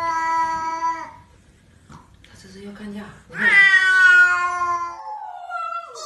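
Cats yowl at each other in short, tense cries.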